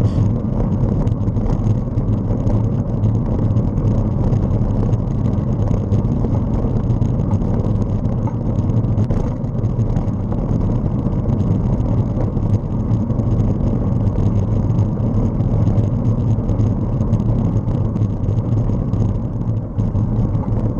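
Wind buffets the microphone steadily.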